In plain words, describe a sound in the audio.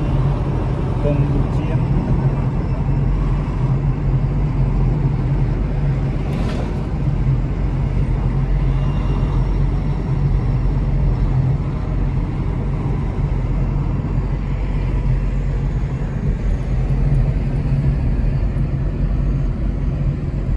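A small car's engine hums and its tyres roar on a paved road, heard from inside.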